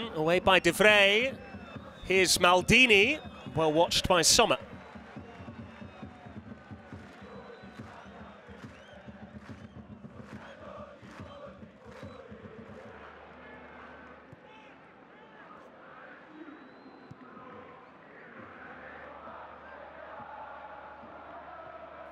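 A large stadium crowd murmurs and cheers outdoors.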